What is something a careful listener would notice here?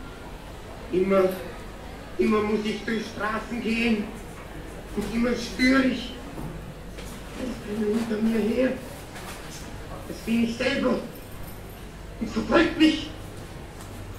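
A man speaks in short phrases with animation.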